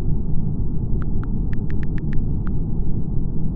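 Keyboard keys click in a quick run.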